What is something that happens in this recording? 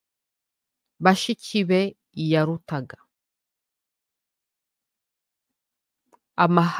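A young woman speaks with animation through a microphone, in short bursts with pauses.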